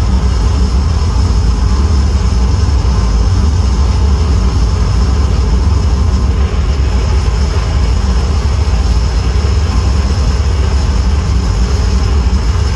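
Loud electronic music with a deep, droning bass plays steadily through loudspeakers.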